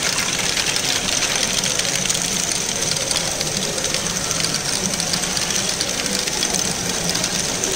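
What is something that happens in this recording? Small motors whir steadily.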